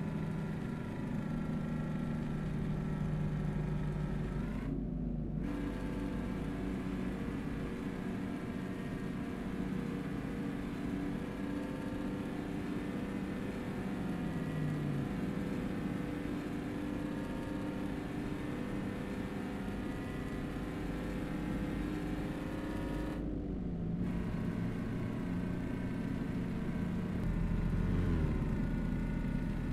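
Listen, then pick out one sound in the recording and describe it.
A truck engine drones steadily, its pitch rising and falling with gear changes.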